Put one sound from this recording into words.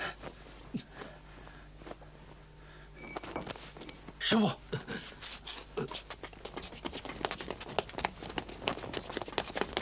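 Several people shuffle and scuffle on the ground.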